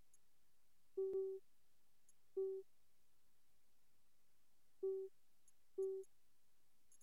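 Short electronic beeps sound.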